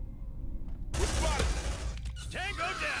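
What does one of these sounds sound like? Rapid gunfire bursts loudly.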